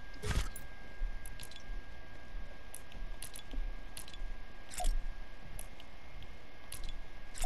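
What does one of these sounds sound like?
Soft menu clicks tick several times.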